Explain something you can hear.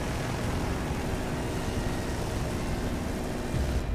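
A helicopter's rotor thumps nearby.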